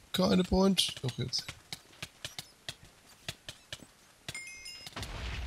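Punches land on creatures in quick, sharp thuds.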